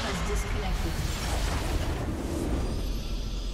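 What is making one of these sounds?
Magic blasts crackle and boom in a game battle.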